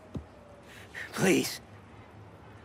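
A woman speaks pleadingly nearby.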